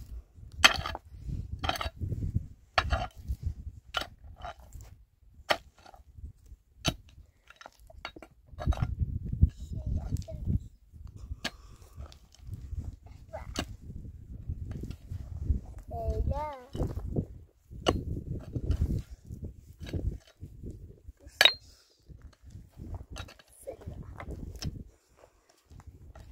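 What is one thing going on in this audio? A pickaxe strikes stony ground again and again.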